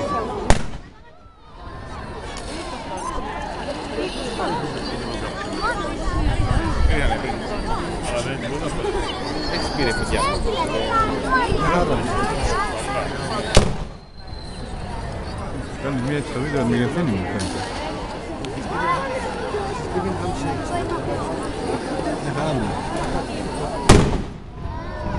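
A burning firework display crackles, fizzes and whistles steadily.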